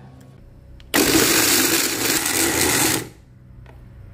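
A blender whirs loudly, grinding food.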